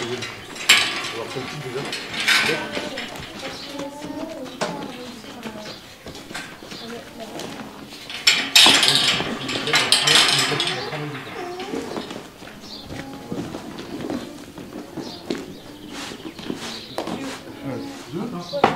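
Several men and women talk casually nearby.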